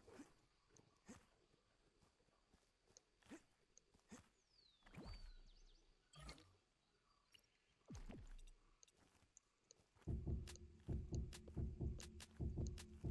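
Short game sound effects click and pop.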